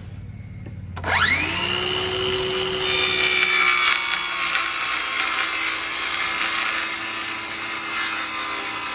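A circular saw whirs up to speed and runs with a high, steady whine.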